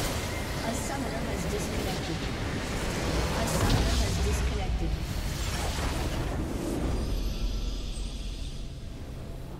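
Video game combat effects crash and burst.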